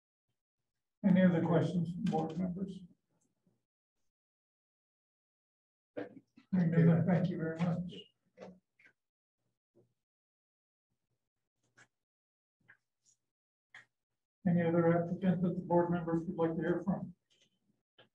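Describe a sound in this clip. An older woman speaks calmly over an online call.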